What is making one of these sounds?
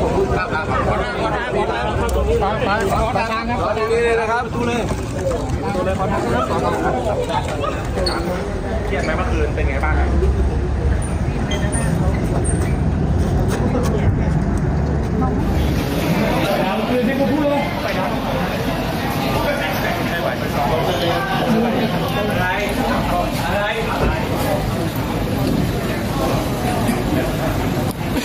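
A crowd of men and women talks and calls out over one another close by.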